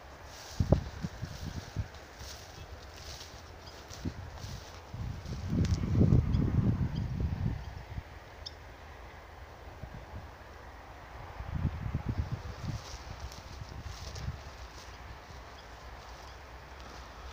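Wind rumbles in gusts against the microphone outdoors.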